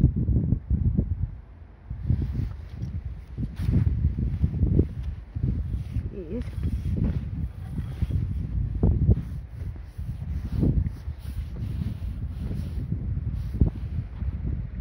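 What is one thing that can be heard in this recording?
Wind buffets the microphone in strong gusts outdoors.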